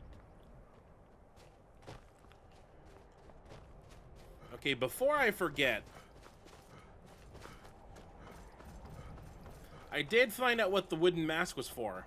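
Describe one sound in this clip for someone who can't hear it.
Footsteps crunch softly on snowy ground.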